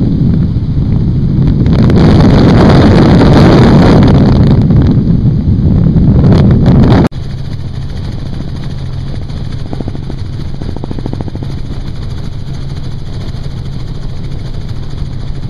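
A helicopter engine and rotor drone steadily.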